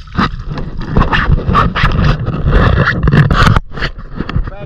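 Water splashes and churns as someone wades through a river.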